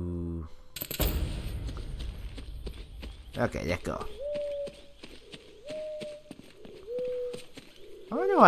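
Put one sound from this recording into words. Footsteps run through rustling grass.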